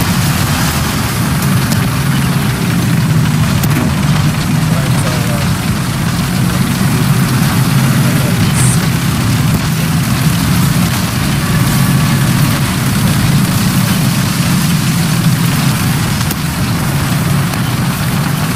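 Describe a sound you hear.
Tank tracks clank and rattle.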